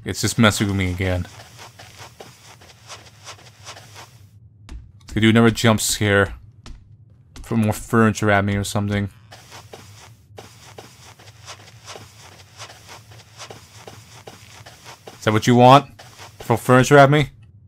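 Footsteps tap softly on a wooden floor.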